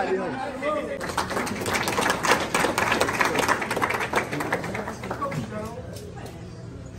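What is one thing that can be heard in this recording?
A large crowd chatters and cheers in a big echoing room.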